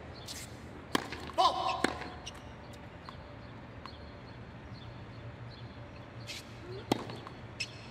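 A tennis racket sharply strikes a ball.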